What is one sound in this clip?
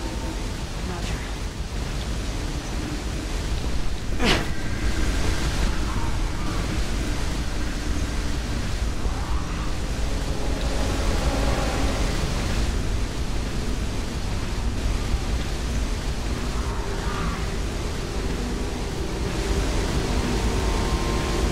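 Fire roars with a low, steady rumble.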